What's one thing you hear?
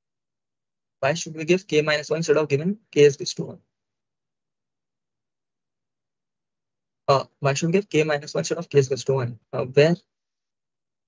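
A young man speaks calmly into a nearby microphone, in short bursts.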